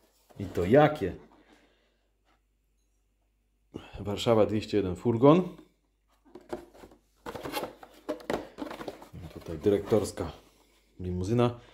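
A plastic case clicks and rattles as it is handled.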